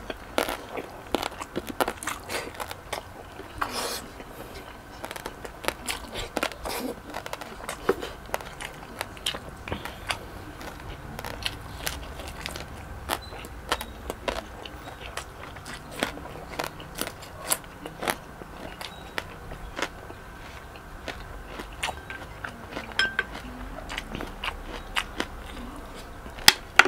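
A man chews food with wet, crunchy smacking sounds close to a microphone.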